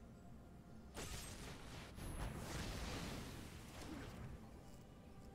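A sparkling magical whoosh plays from a game.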